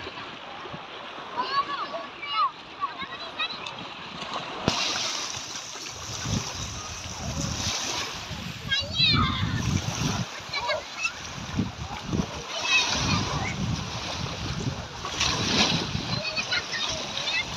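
Small waves lap and splash in shallow water.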